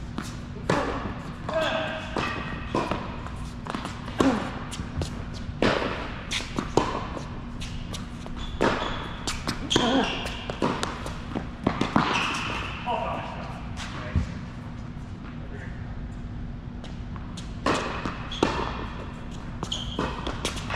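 Tennis rackets strike a ball back and forth with sharp pops in a large echoing hall.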